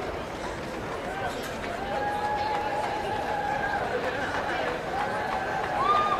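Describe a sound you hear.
A large crowd murmurs and chatters in a big open tent.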